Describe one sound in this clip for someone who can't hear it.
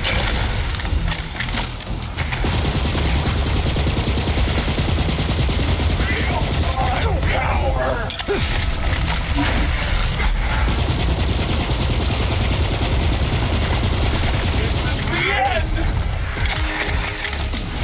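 Rapid gunfire rattles on and on.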